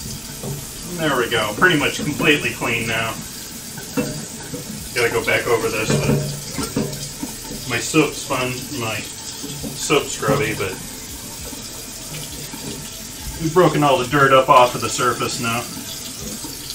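A man talks animatedly through a microphone.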